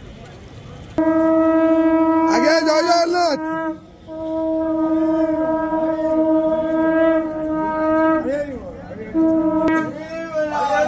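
Several men chant together in unison outdoors.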